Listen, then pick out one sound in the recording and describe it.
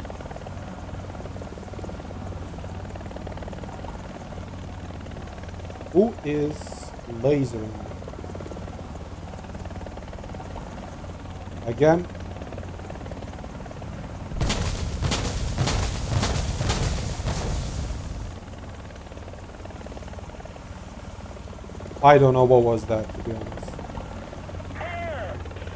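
A helicopter's rotor drones and thumps steadily overhead.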